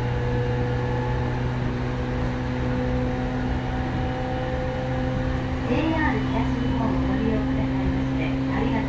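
A train rumbles and hums steadily as it runs along the track.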